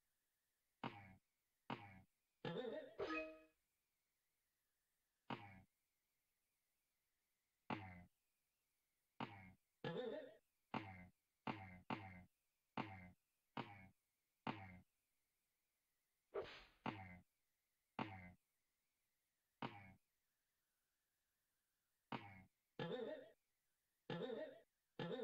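Short video game sound effects play as a character jumps.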